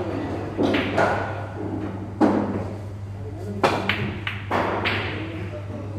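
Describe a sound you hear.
Billiard balls knock against each other and roll across the table.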